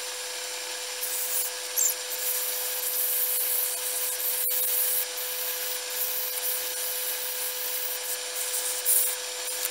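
Sandpaper rubs against spinning wood with a soft hiss.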